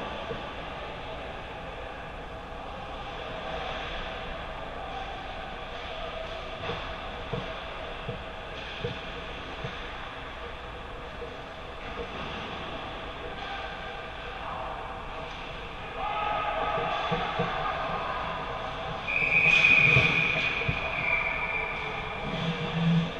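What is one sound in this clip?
Ice skates scrape on ice in a large echoing arena.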